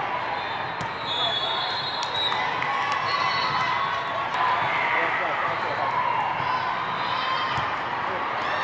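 A volleyball thuds off a player's arms.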